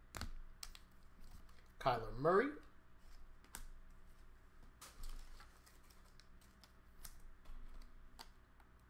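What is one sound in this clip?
Plastic card sleeves click and rustle in hands.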